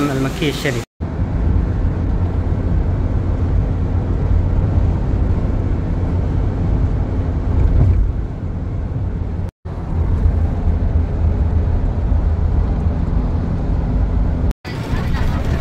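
A car's engine rumbles steadily while driving along a road.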